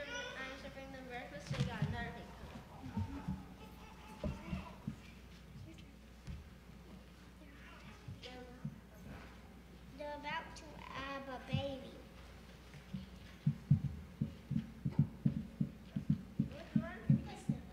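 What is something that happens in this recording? A child speaks into a microphone, heard through a loudspeaker in a hall.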